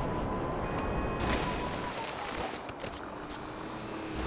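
A motorcycle crashes and scrapes along the road.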